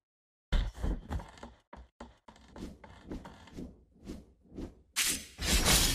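Quick footsteps patter in a steady rhythm.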